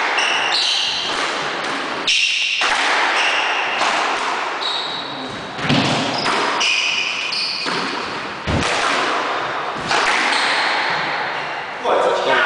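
A squash ball smacks against the walls with echoing thuds.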